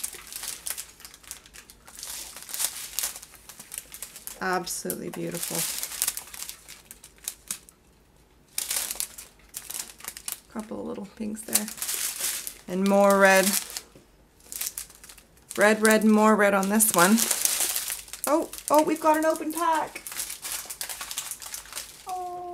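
Small plastic bags of resin beads crinkle and rustle in hands.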